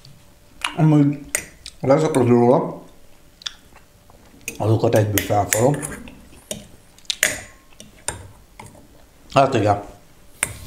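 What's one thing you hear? A metal spoon clinks against a glass jar.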